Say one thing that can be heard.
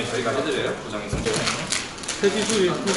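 A plastic bag rustles.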